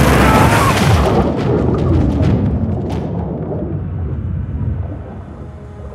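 Water bubbles and rushes, muffled as if underwater.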